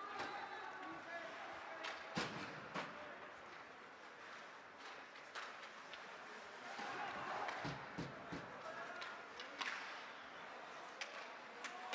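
A crowd murmurs and calls out in a large echoing rink.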